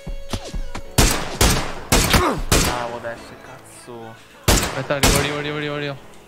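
Rifle shots ring out, loud and sharp, with a short echo.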